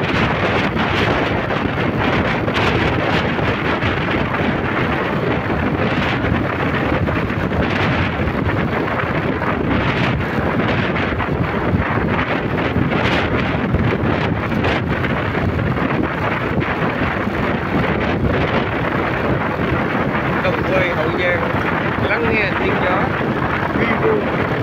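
Wind rushes loudly past, roaring steadily.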